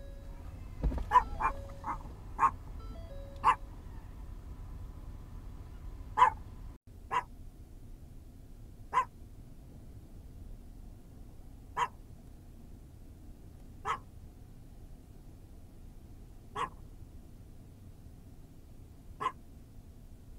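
An elk bugles with short, high squeals.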